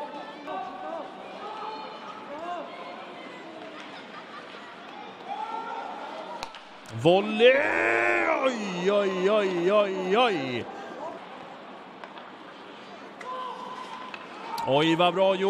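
A stick strikes a ball on the ice with a sharp knock.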